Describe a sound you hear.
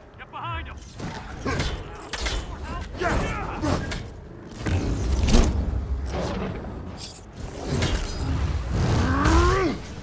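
Punches and impacts thud repeatedly.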